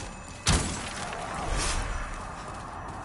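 A burst of magic whooshes and crackles.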